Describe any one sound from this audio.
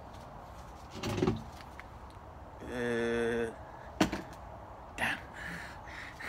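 A wicker chair creaks and knocks as it is lifted and set down.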